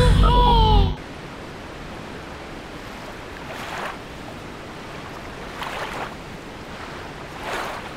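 Rough sea waves surge and crash.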